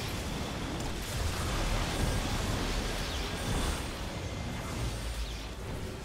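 Energy blasts hit a target with rumbling bursts.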